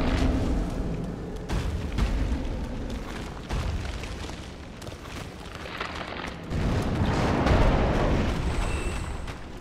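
Heavy armored footsteps clank and thud on stone.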